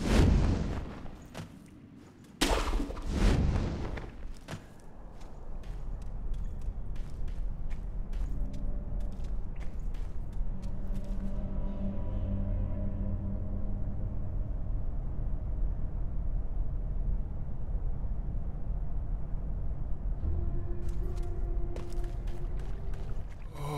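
A game character's footsteps crunch over rock and dirt.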